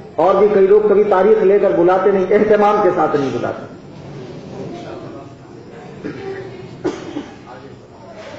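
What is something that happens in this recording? A man speaks with animation into a microphone, chanting in a melodic voice.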